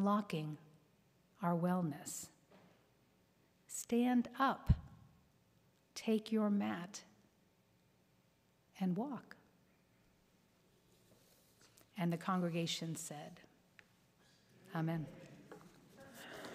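A middle-aged woman speaks calmly into a microphone in an echoing hall, pausing between phrases.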